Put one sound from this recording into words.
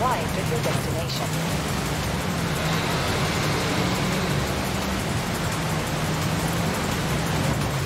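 Water splashes and sprays under car tyres.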